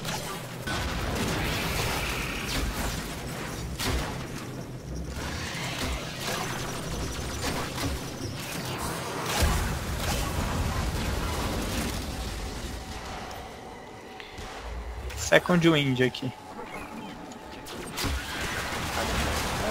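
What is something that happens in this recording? Gunfire and blasts crackle from a game.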